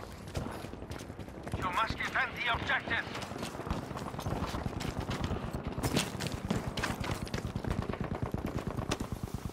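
Footsteps crunch quickly over rubble.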